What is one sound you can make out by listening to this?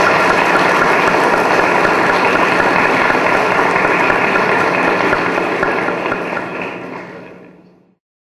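An audience applauds steadily in an echoing hall, fading out at the end.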